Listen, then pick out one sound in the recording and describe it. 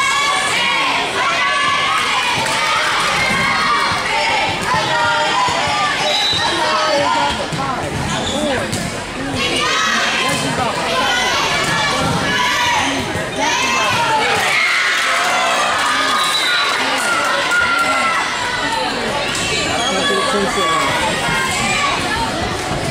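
Spectators cheer and chatter in an echoing gym.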